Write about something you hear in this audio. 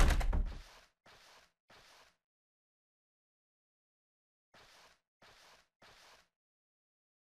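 Footsteps tap slowly on a wooden floor.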